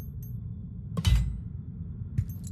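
A deep whoosh swells briefly.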